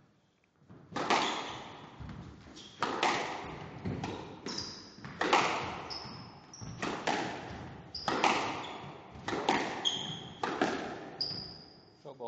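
A squash ball smacks hard against walls in a large echoing court.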